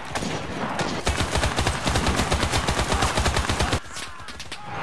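A machine gun fires rapid bursts of shots close by.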